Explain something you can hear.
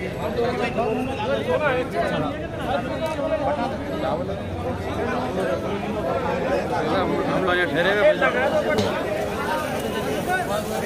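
A crowd of men chatter loudly and overlap close by.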